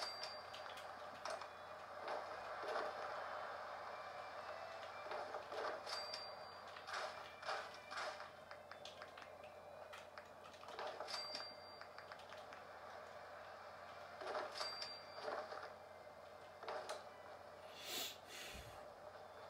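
Short menu clicks and chimes play from a television speaker as selections change.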